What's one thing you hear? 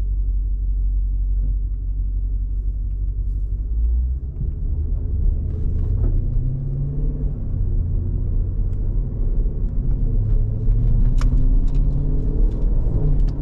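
A car engine rumbles deeply inside the cabin as it drives.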